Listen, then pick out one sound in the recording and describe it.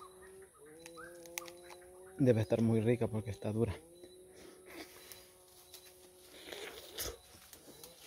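A man bites into a crunchy fruit and chews.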